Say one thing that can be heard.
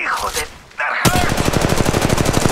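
A gun fires in a rapid, rattling burst.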